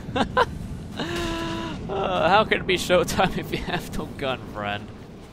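A man groans in pain.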